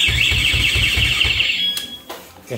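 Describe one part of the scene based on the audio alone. A motorcycle alarm wails in rapid pulsing bursts, then stops.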